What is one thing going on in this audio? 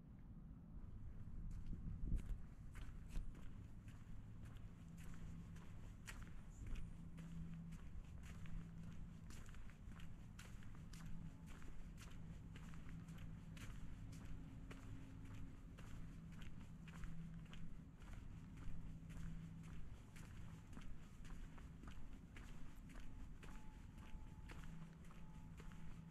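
Footsteps fall on brick paving outdoors.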